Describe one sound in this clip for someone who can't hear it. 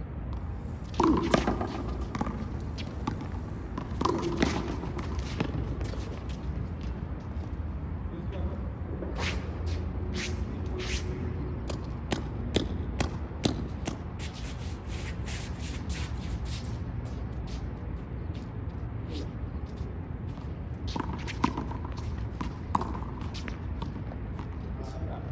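A ball smacks sharply against a wall and is hit back and forth.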